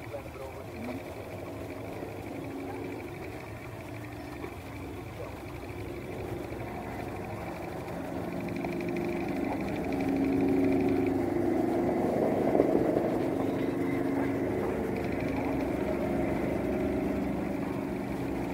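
Propeller engines drone steadily as a large plane approaches and grows louder.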